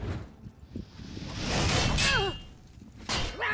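Flames burst and roar briefly.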